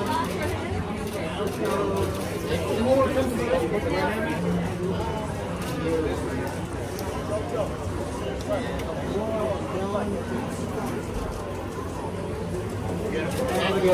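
A crowd of men and women chatters and calls out all around.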